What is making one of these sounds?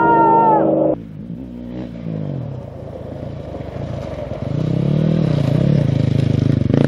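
A motorcycle engine revs up and down close by.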